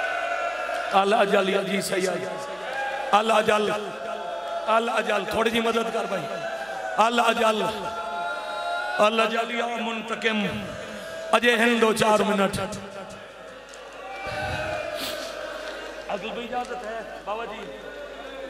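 A middle-aged man speaks passionately into a microphone, heard through loudspeakers.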